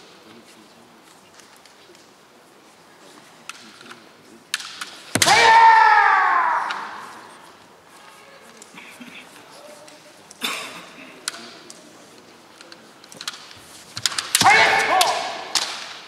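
Bamboo kendo swords clack together.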